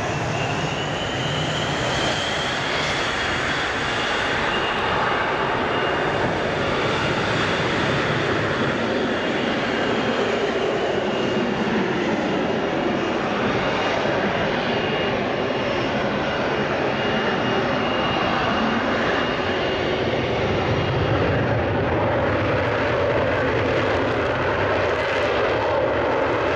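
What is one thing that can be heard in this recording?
Jet engines roar loudly and steadily close by.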